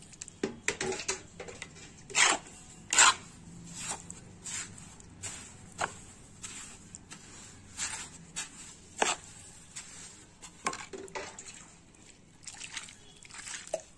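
A metal trowel scrapes and slaps through wet cement, close by.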